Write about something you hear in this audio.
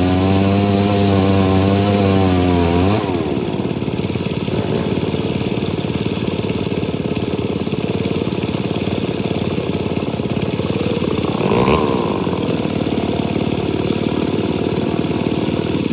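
An engine runs steadily and loudly throughout.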